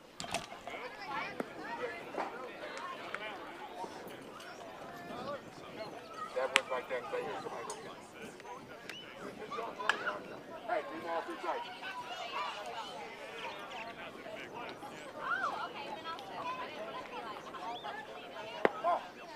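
Children and adults call out and chatter across an open field.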